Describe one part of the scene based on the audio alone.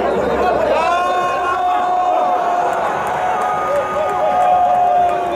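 A large crowd cheers loudly in an open stadium.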